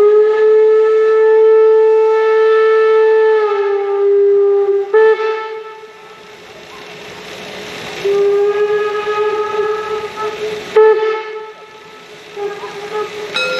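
A steam locomotive whistle blows loudly in long repeated blasts.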